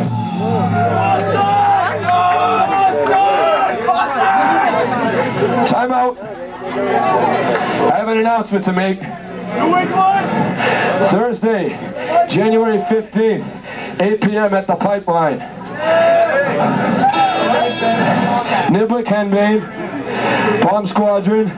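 A man speaks into a microphone and is heard through loudspeakers in a live, echoing room.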